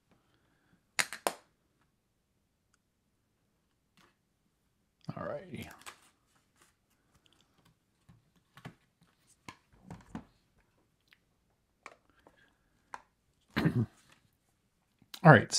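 Small plastic pieces click and tap on a hard tabletop.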